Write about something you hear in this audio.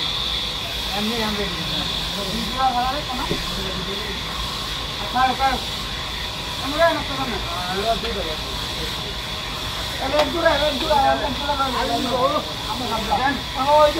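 Young men talk loudly nearby over the machine noise.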